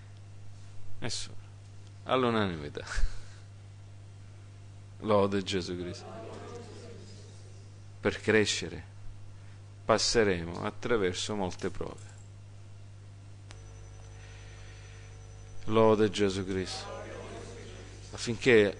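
A middle-aged man speaks with animation through a microphone, in bursts with pauses.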